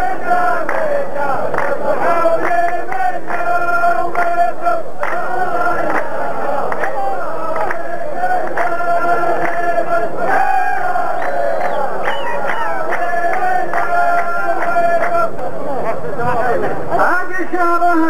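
A large group of men chant together in rhythm, echoing outdoors.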